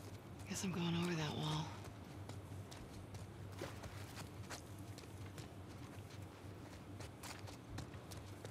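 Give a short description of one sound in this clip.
Footsteps tread on hard ground.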